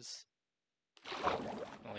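Water splashes as something plunges in.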